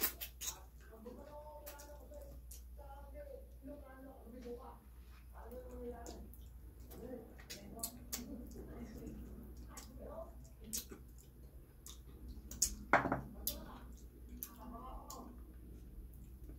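A woman hums with pleasure while eating, close by.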